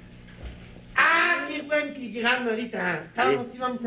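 A woman talks excitedly and quickly.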